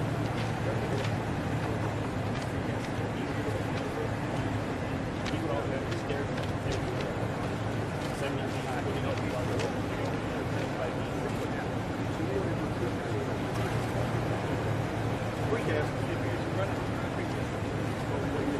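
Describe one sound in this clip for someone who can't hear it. An older man answers calmly nearby.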